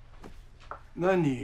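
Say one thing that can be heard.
An elderly man calls out loudly.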